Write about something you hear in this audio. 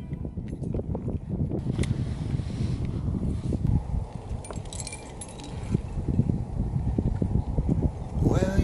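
Metal climbing gear clinks and jingles.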